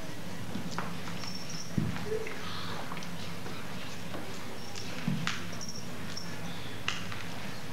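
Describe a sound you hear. Bare feet thud softly on a wooden stage in a large hall.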